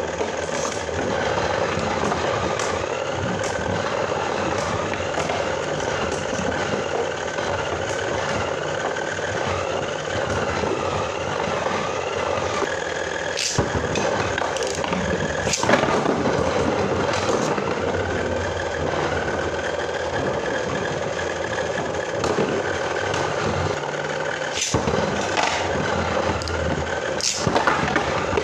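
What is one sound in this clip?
Spinning tops clack sharply against each other and the bowl's rim.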